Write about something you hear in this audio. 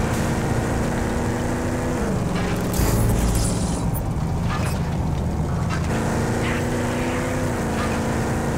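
A vehicle engine hums steadily.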